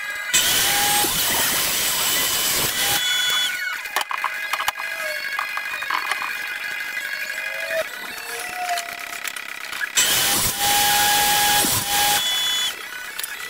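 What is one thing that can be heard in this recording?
A table saw whines loudly as it cuts through wood.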